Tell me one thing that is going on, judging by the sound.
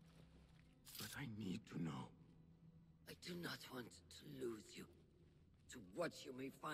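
A woman speaks calmly and gravely.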